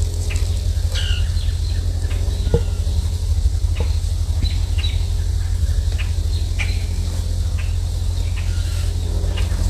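Wind rumbles steadily across a microphone outdoors.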